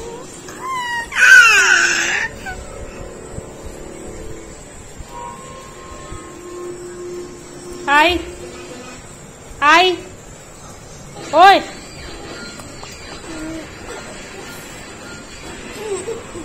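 A toddler squeals and babbles close by.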